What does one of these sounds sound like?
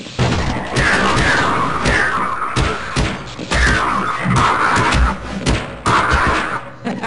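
A metal crowbar strikes flesh with heavy thuds.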